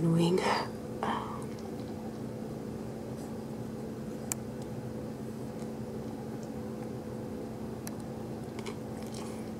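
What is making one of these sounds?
A woman chews food with soft, wet mouth sounds close to a microphone.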